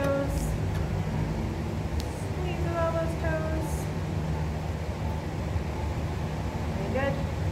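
A woman speaks calmly close by.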